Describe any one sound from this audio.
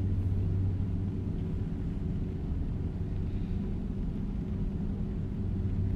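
A truck engine hums low and steady while driving.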